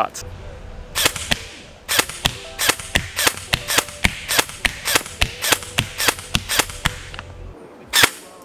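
An airsoft rifle fires a rapid string of sharp shots.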